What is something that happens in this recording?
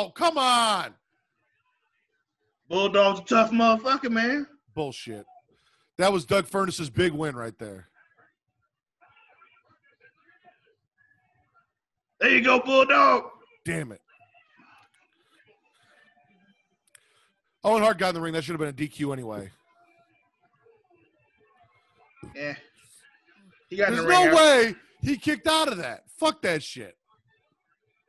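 A second man speaks through an online call.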